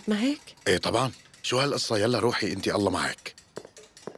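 A man speaks with emotion close by.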